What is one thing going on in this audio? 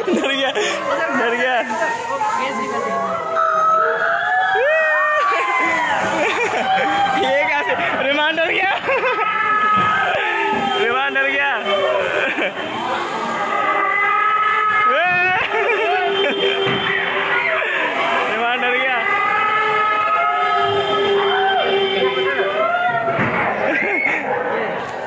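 A crowd of young people talks and shouts loudly nearby.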